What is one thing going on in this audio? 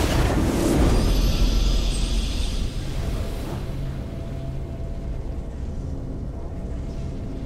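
A triumphant victory fanfare swells and plays.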